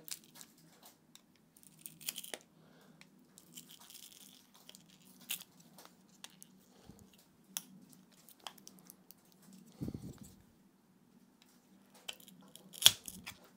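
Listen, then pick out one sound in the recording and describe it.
A screwdriver clicks and scrapes against plastic parts.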